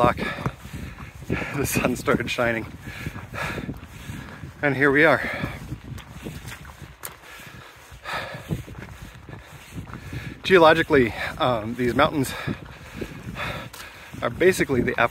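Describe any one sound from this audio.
A man talks cheerfully and close up, outdoors in wind.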